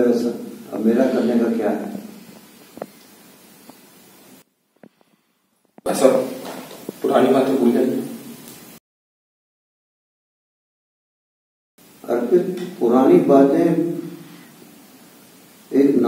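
A man speaks calmly nearby, in short bursts.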